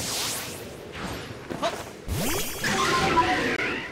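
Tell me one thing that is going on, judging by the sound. A magical burst crackles and shimmers.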